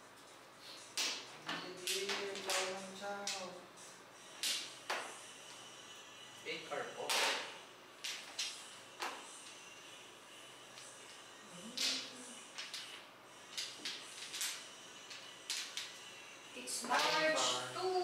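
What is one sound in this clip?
Mahjong tiles clack sharply against one another on a table.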